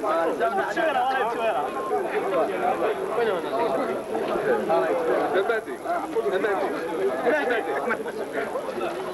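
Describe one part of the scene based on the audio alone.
A crowd of people chatters and murmurs nearby.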